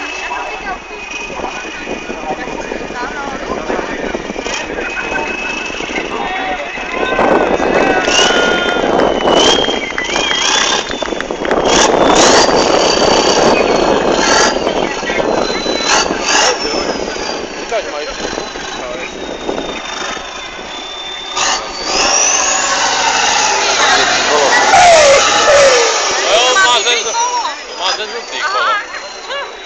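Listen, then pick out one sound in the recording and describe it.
A truck engine revs hard and roars as it climbs.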